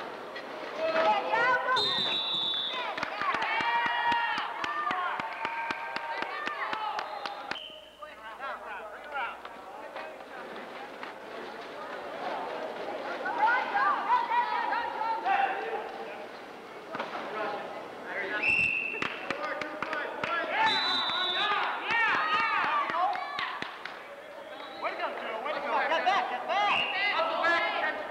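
A ball bounces on a hard floor.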